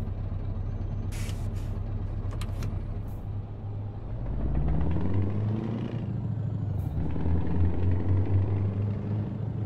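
A truck engine rumbles steadily and rises in pitch as it speeds up.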